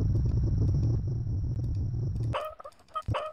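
A fire roars low inside a furnace.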